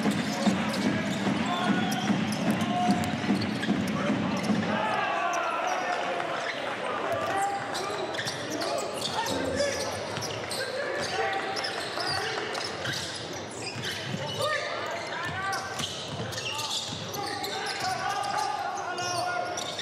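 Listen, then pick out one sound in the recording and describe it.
A crowd cheers and murmurs in a large echoing arena.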